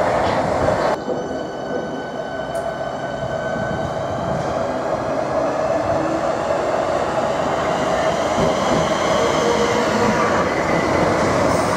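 A train rolls slowly into a station, its wheels squealing on the curved track.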